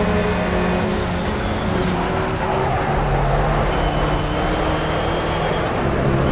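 A race car engine drops in pitch as the driver brakes and shifts down.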